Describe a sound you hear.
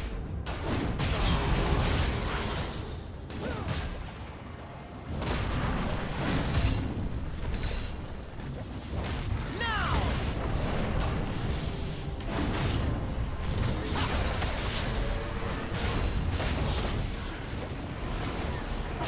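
Game weapons strike with repeated hits.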